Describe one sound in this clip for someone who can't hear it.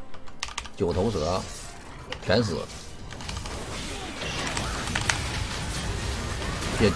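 Game spell effects crackle and clash in quick bursts.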